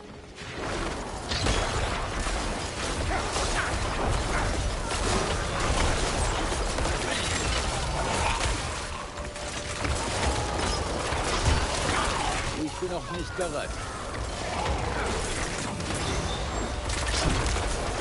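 Game combat sounds of spells, hits and explosions crash and clatter throughout.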